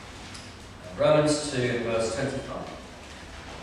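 An older man speaks briefly into a microphone.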